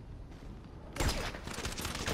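A gunshot cracks sharply.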